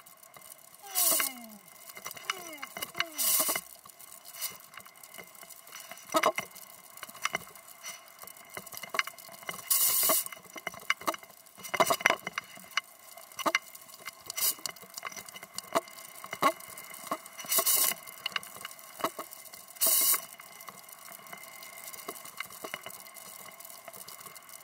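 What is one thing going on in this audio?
A snowboard hisses and swooshes through deep powder snow.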